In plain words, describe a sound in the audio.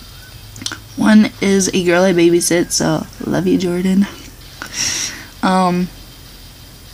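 A young woman talks casually and close up, with animation.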